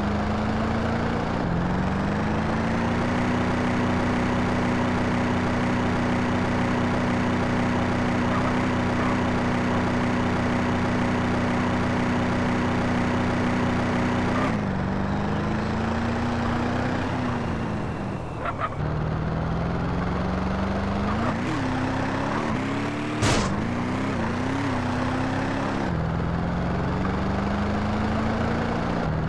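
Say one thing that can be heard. A car engine hums steadily and revs up and down as the car drives.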